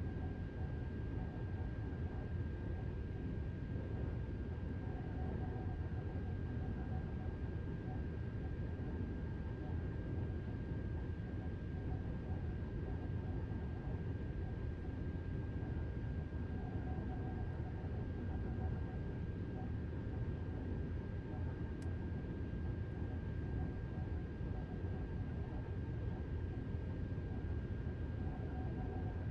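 A steady high electric whine sounds inside a train cab.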